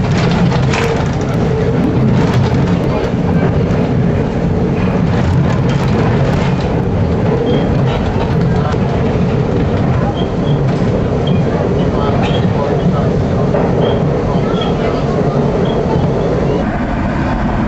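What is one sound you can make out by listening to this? A subway train rumbles and rattles along the tracks in a tunnel.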